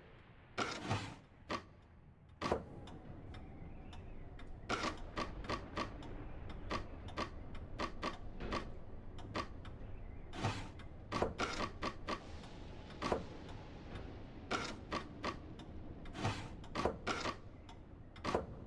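Wooden blocks clack and knock as they slide into place.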